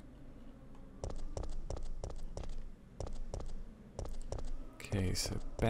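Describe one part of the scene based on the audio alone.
Footsteps tap on hard ground at a steady pace.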